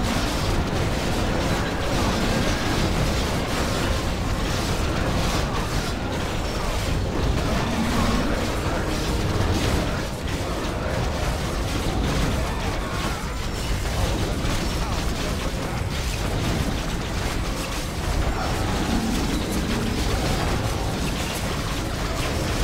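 Magic spells burst and crackle.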